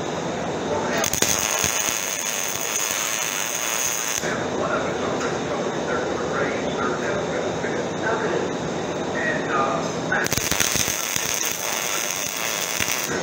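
An arc welder crackles and sizzles steadily.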